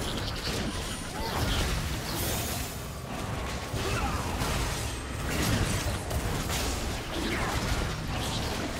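Magic spells whoosh and crackle in a fast video game battle.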